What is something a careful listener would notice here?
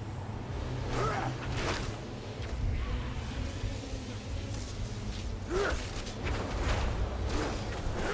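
Sword blows strike and slash in quick bursts.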